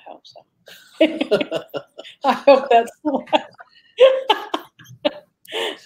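A woman laughs heartily over an online call.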